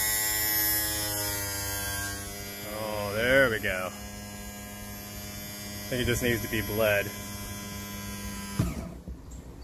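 An electric motor hums steadily, then stops abruptly.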